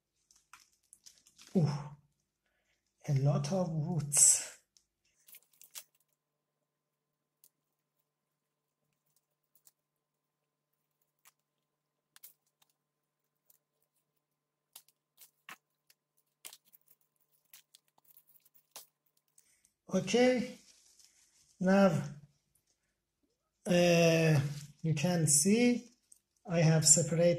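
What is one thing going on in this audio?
Soil crumbles and roots rustle as hands pull a plant apart.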